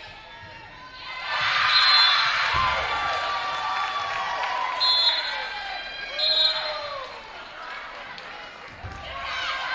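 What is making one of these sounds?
Young women cheer and shout in an echoing gym.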